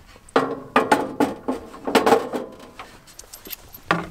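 A steel griddle plate clanks onto a camp stove.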